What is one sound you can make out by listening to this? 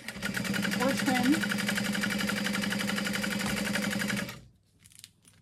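A sewing machine whirs and stitches rapidly, then stops.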